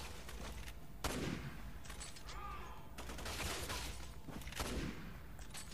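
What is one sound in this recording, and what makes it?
A rifle clicks and clatters as it is readied.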